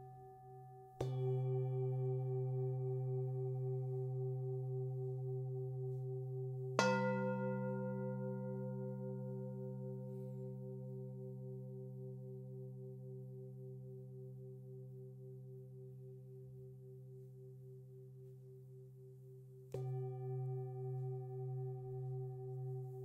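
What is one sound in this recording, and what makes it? A mallet strikes a singing bowl, and the bowl rings out and slowly fades.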